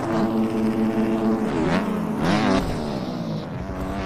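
A motorcycle crashes with a thud.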